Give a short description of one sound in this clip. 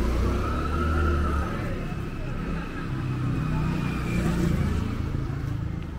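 A motorbike engine hums as it passes along the street.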